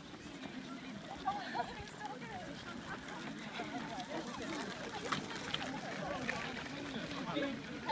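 Many runners' footsteps crunch on a gravel path.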